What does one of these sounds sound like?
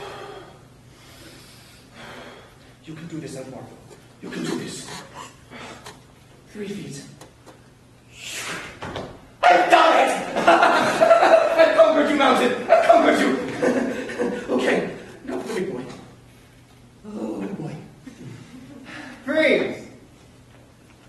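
A young man speaks loudly on a stage, heard in a hall.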